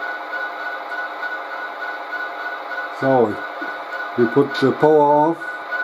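A model locomotive's diesel engine idles with a steady rumbling hum.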